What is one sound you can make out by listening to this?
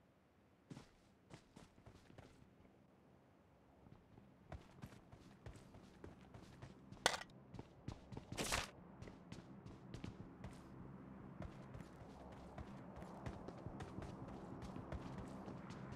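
Footsteps thud quickly over grass and wooden floors.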